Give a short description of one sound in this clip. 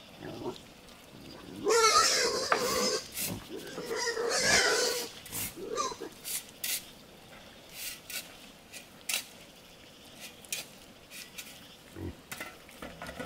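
A shovel scrapes and mixes gravel and cement.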